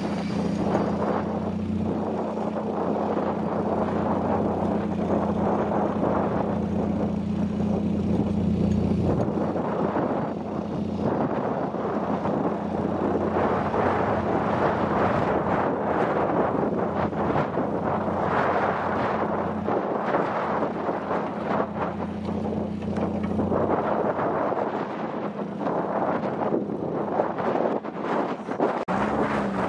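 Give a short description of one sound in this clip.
A small car's engine revs hard outdoors.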